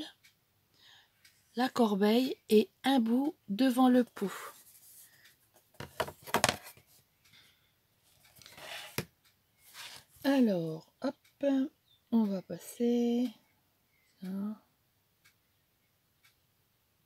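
Paper rustles softly under handling fingers.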